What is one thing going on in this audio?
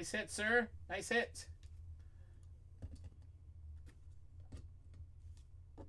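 Plastic card cases tap and click softly.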